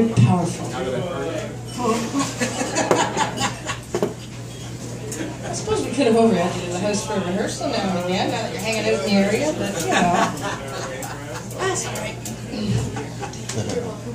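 A woman plays acoustic guitar.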